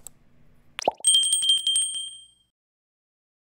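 A small notification bell chimes and rings out.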